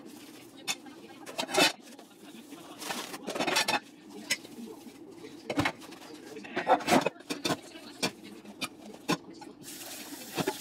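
A sponge scrubs and squeaks against dishes.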